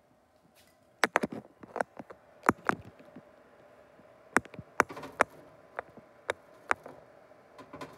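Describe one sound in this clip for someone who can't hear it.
A metal wire basket clanks against an oven.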